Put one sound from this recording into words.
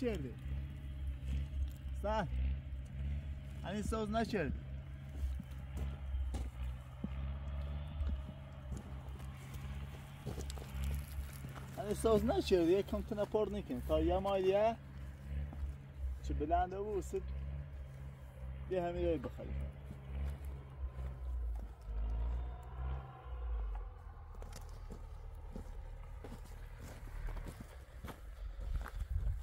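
A horse tears at grass while grazing.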